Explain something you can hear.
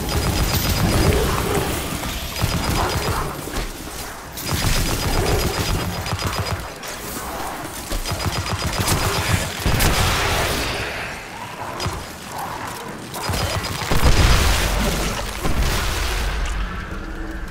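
Electric crackles and zaps burst loudly.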